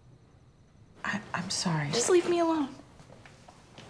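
A young woman speaks pleadingly, close by.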